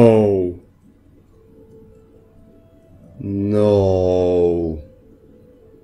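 A teenage boy talks in long, drawn-out sounds close to a microphone.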